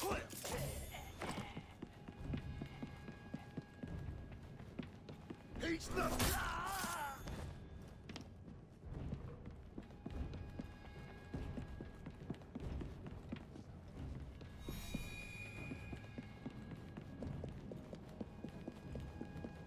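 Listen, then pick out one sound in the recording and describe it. Footsteps thud quickly on a wooden floor.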